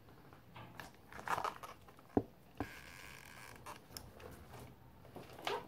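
Leather straps rustle and knock against an accordion's case.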